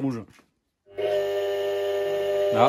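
An electric air compressor starts and hums steadily.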